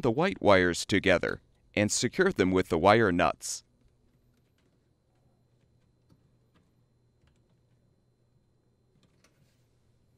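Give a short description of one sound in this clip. Plastic wire connectors rustle and click as they are twisted off.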